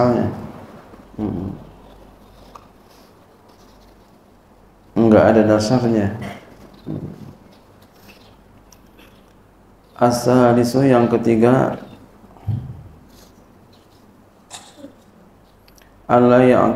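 A man speaks slowly and calmly into a microphone, with long pauses, in a room with a slight echo.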